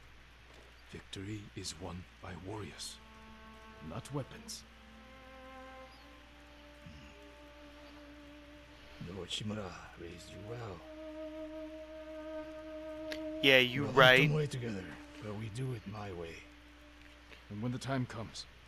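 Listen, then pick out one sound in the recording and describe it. A younger man answers in a low, steady voice.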